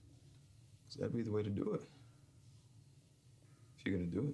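A man speaks quietly and tensely nearby.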